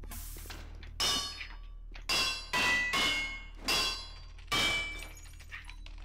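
Glass bottles clink and ring sharply.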